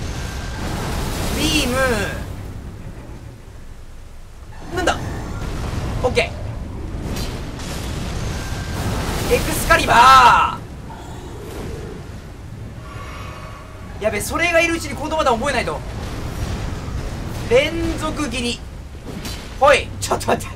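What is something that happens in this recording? A giant creature roars and shrieks.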